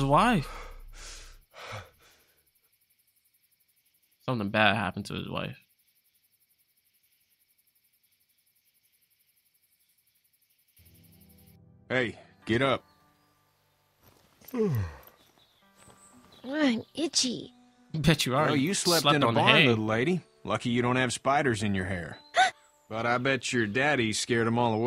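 A young man talks through a headset microphone with animation.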